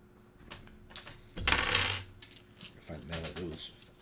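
Dice rattle and tumble in a tray.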